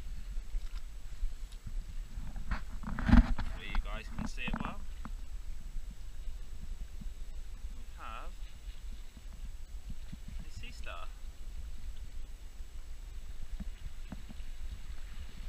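Water laps gently against rocks.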